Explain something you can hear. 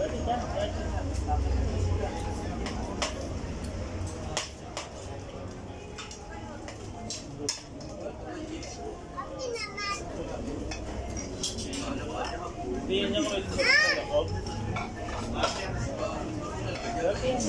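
A crowd murmurs and chatters in the background outdoors.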